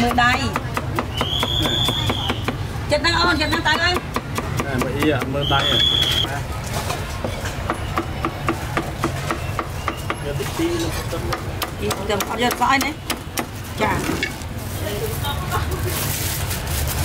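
A cleaver chops rapidly on a wooden board.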